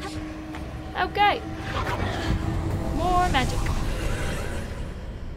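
Magic spells crackle and whoosh.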